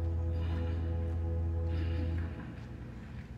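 A piano chord rings out and fades in a large echoing hall.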